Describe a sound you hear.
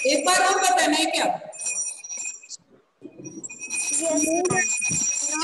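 A middle-aged woman speaks firmly and with emphasis, close to a microphone.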